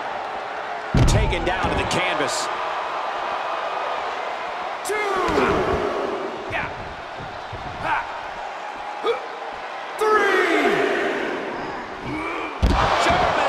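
A heavy body slams onto a hard floor with a thud.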